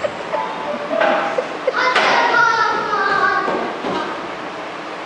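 A child speaks lines, heard from an audience in a hall.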